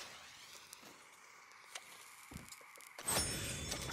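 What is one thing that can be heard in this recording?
A man puffs on a cigarette and exhales.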